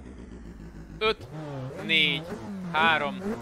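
A racing car engine screams at high revs in short bursts.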